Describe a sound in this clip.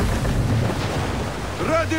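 A fiery explosion booms at sea.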